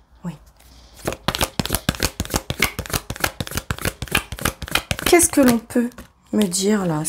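Cards riffle and flap quickly as they are shuffled.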